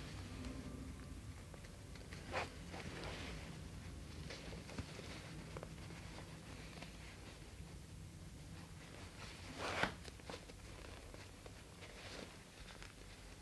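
Fabric rustles and scrapes under hands.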